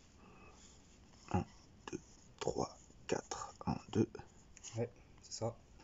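Stiff cards rustle and snap as they are sorted by hand.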